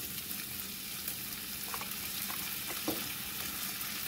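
Chopped tomatoes tumble into a sizzling pan.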